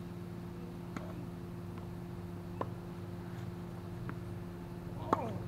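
A tennis ball is struck with a racket far off outdoors.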